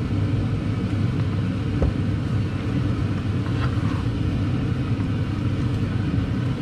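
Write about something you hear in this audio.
A spatula scrapes against a pan while stirring.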